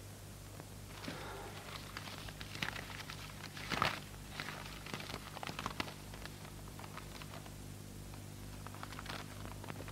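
Paper rustles and crinkles in someone's hands.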